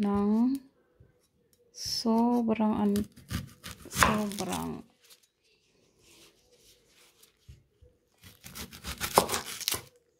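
A knife slices through an onion on a wooden board.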